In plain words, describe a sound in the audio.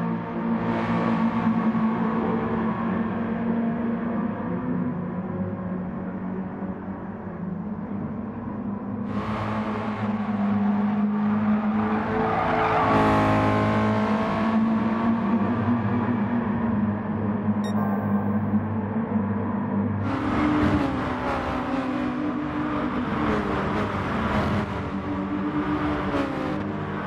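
A racing car engine roars and whines as it shifts gears.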